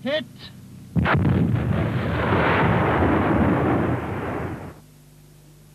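A large explosion roars and rumbles.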